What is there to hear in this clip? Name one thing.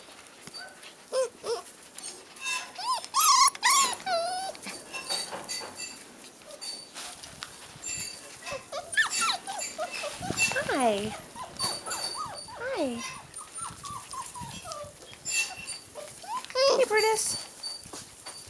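Puppies whine and yelp close by.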